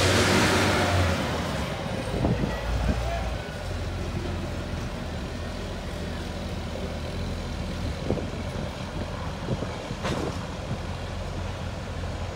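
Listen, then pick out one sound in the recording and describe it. Hopper cars roll on steel rails behind a railcar mover.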